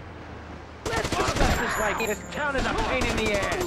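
A pistol fires a rapid string of shots.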